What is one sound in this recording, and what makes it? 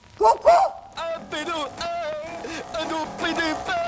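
A man sings through a loudspeaker.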